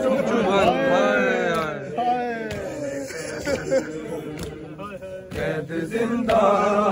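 A young man chants a lament loudly, close by.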